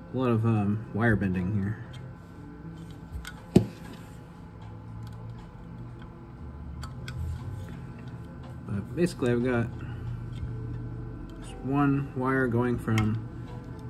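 Small metal parts click and tap against a metal box.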